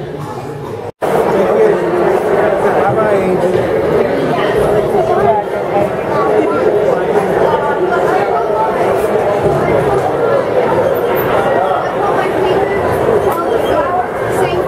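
A crowd of people chatters loudly in an echoing hall.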